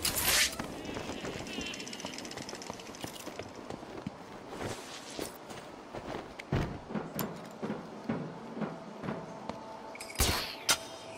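Footsteps thud and scuff on a hard floor.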